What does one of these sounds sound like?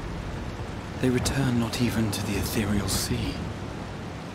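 A young man speaks calmly and softly.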